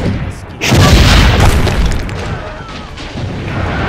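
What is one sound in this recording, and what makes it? A heavy explosion booms and rumbles away.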